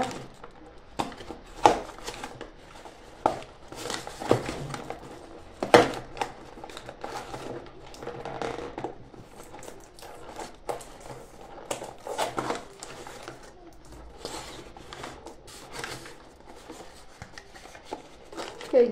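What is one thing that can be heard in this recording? Small cardboard boxes tap and knock together.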